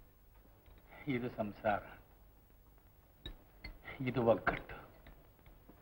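A middle-aged man speaks calmly and clearly nearby.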